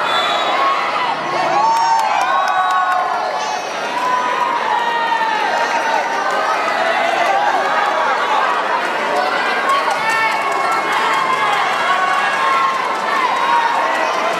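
Young women call out and talk excitedly close by.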